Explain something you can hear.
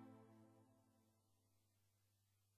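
A keyboard chord rings out and slowly fades away.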